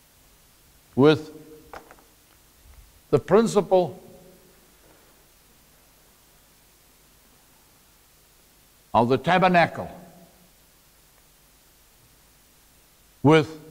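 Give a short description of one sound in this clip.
A man speaks in short bursts, raising his voice as if lecturing.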